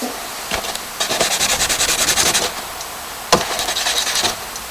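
A pencil scratches quickly back and forth across paper.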